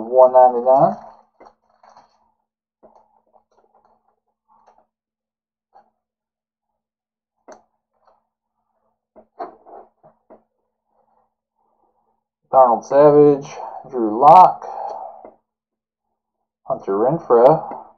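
Trading cards rustle and slide softly in hands.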